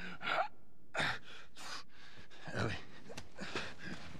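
A man calls out a name weakly.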